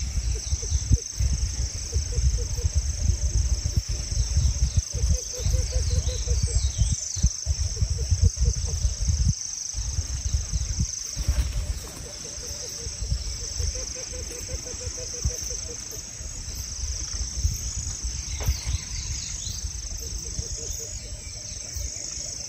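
Wind blows through leafy trees outdoors.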